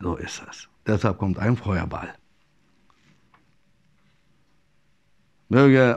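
A middle-aged man speaks calmly into a clip-on microphone, close by.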